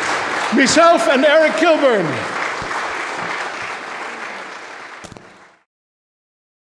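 An audience applauds and the clapping slowly fades.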